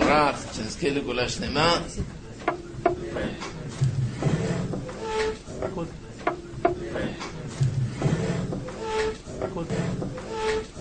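A group of men sing together in a lively, rhythmic chant in an echoing room.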